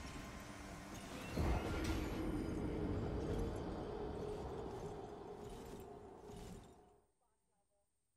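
Great wings beat with a loud rushing roar.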